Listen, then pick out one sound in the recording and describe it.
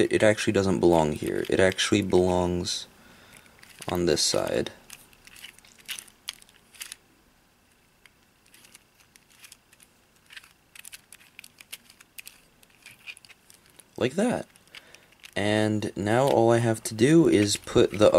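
A puzzle cube clicks and rattles as its layers are turned.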